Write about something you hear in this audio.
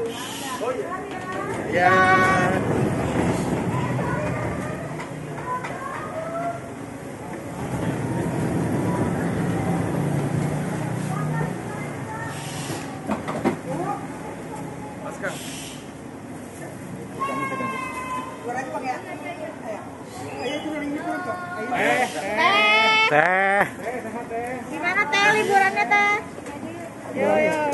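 Several people talk nearby, outdoors.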